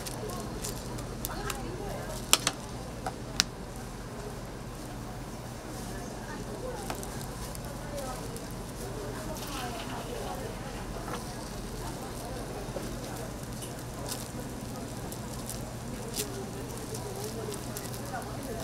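A gloved hand squishes soft minced filling.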